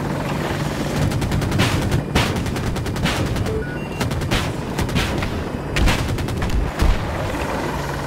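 A heavy cannon fires in rapid bursts.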